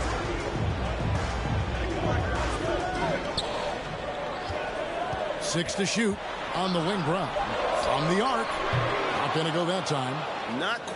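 A crowd roars steadily in a large arena.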